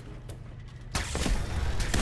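A robot whirs and clanks nearby.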